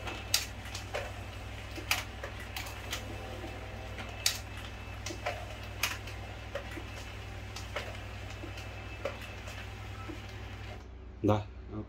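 A printer hums steadily and clicks as it feeds out pages.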